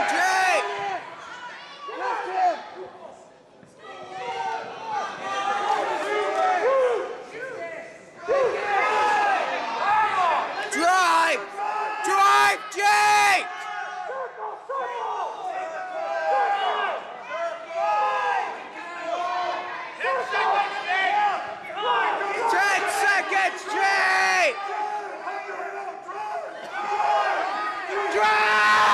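Spectators shout encouragement loudly in a large echoing hall.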